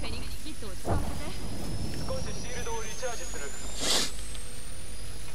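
An electric charge crackles and hums, rising in pitch.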